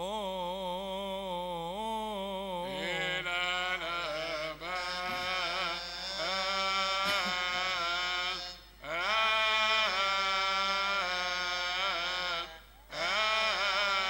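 A young man chants in a loud, sustained voice through a microphone, echoing in a large hall.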